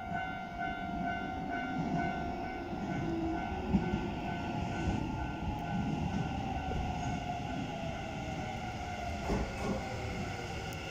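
A train rumbles and whines as it approaches, slowly getting louder.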